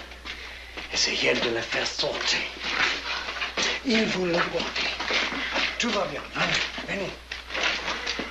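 A man speaks urgently and loudly nearby.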